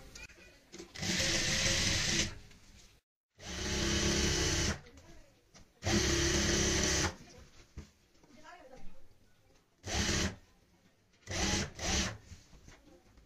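A sewing machine whirs in short bursts as it stitches fabric.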